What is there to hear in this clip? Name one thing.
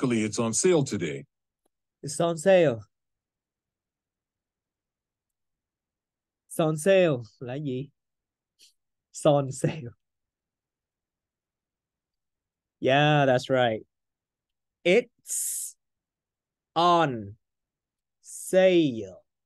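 A man speaks calmly in short phrases through a computer microphone.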